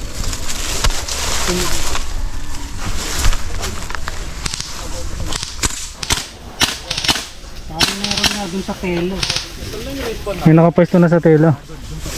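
Dry leaves and twigs crackle and rustle underfoot.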